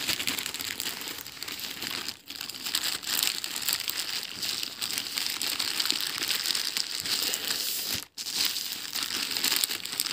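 A plastic mailing bag crinkles and rustles as fingers tear it open.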